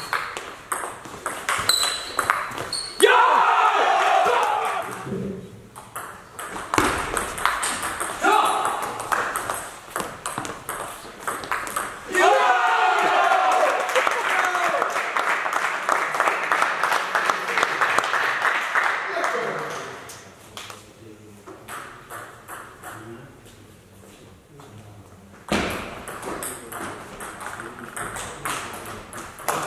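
A table tennis ball clicks back and forth off paddles and a table in a large echoing hall.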